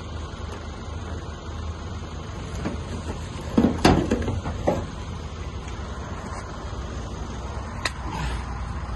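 Shattered safety glass crunches and crackles as it is pulled apart.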